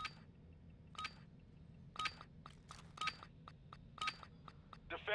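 A short electronic beep sounds once a second, counting down.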